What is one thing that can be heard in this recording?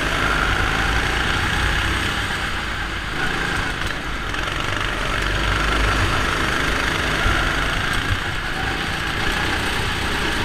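A small kart engine buzzes loudly close by, its pitch rising and falling.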